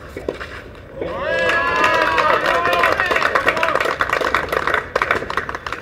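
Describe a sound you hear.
A man cheers loudly.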